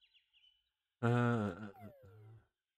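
A short chime sounds.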